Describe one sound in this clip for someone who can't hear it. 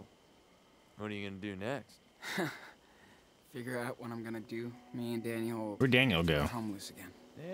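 A young man speaks quietly and sadly.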